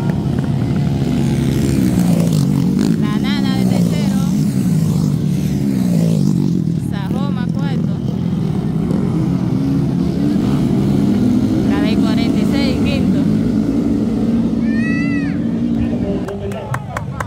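Dirt bike engines rev loudly and rise and fall in pitch as the bikes race past.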